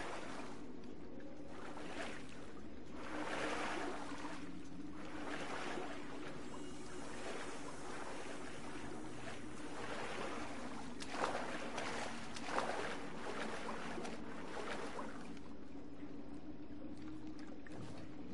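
Water splashes as a soldier wades through it.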